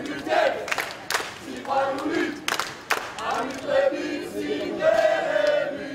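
People in a crowd clap and cheer.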